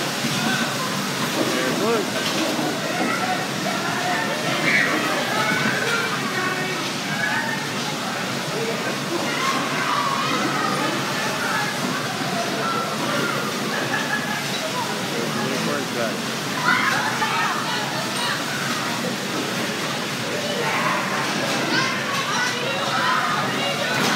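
A crowd of children and adults chatters and shouts in a large echoing hall.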